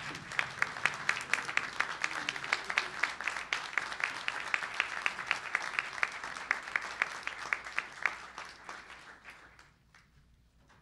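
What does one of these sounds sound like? A crowd applauds loudly in a large room and slowly dies down.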